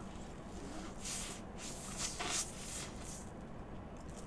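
A woman slurps and chews food close to the microphone.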